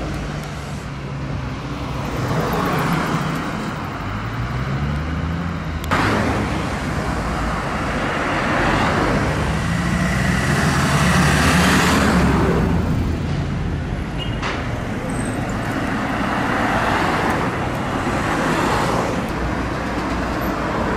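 Car traffic passes by on a street.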